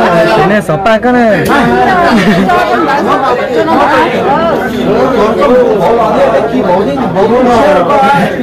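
A young man speaks into a microphone through a loudspeaker.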